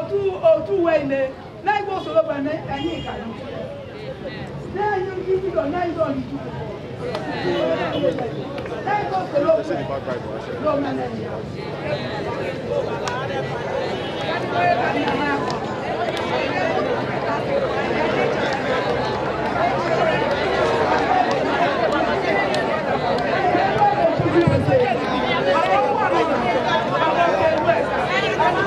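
A large crowd of women prays aloud together outdoors.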